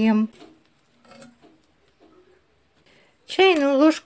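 A spatula scrapes softly around a metal pot.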